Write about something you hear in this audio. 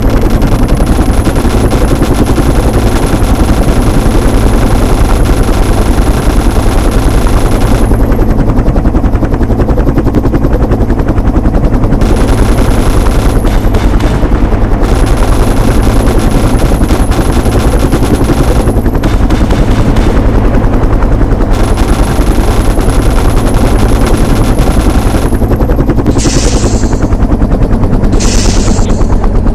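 A helicopter's rotor thuds steadily as it flies.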